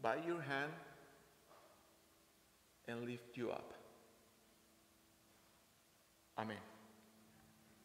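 A man speaks with animation through a microphone in a reverberant hall.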